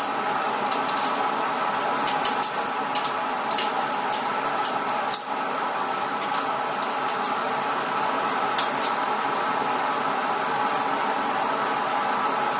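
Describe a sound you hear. Metal chains and hooks clink as a man handles them.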